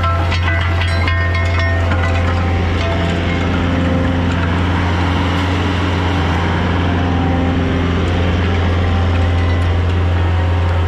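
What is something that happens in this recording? A diesel engine drones loudly and steadily close by.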